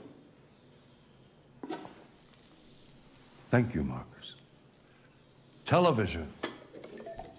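A metal lid clanks as it is lifted off a dish.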